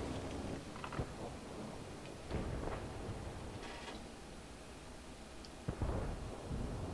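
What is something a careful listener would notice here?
A tank cannon fires with a sharp boom.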